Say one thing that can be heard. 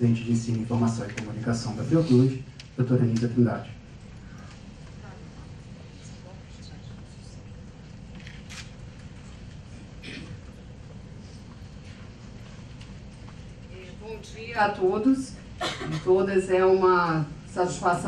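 A man speaks calmly over a loudspeaker in a large echoing hall.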